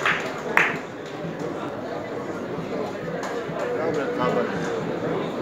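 Spectators murmur and talk nearby, outdoors.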